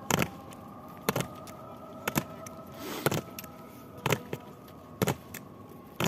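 Boots stamp on stone paving in a slow, even marching rhythm.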